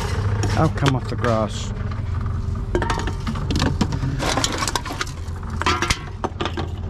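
Metal cans clink and rattle as they are handled.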